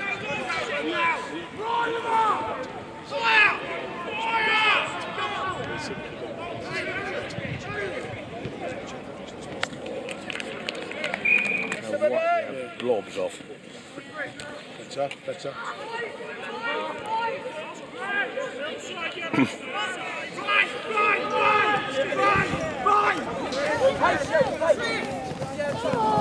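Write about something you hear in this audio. Teenage boys shout to each other across an open field outdoors.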